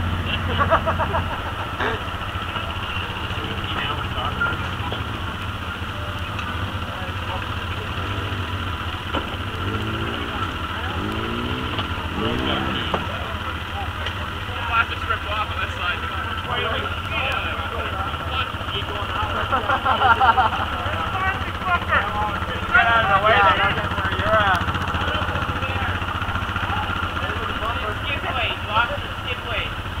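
Off-road vehicle engines rumble and idle steadily nearby.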